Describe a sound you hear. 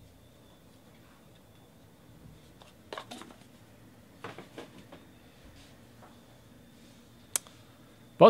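Cards click and tap against one another as they are handled.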